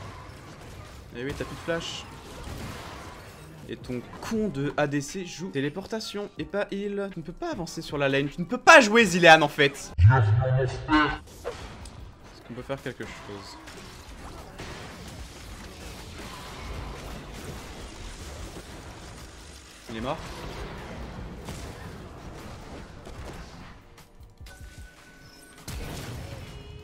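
Game sound effects whoosh and clash.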